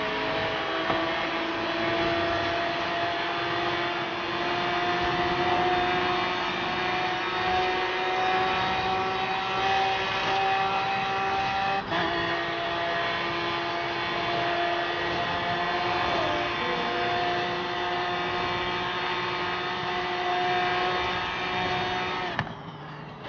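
A sports car engine roars at high speed, its pitch climbing slowly and dropping briefly at a gear change.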